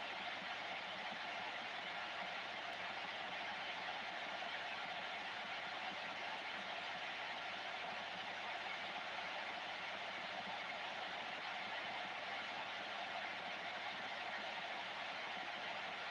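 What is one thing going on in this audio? Steady static hisses from a radio receiver's loudspeaker.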